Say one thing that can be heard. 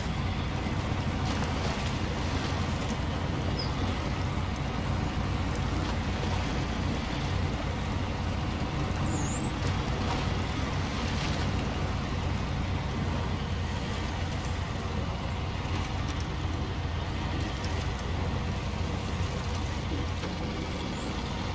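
A heavy truck engine rumbles steadily, labouring at low speed.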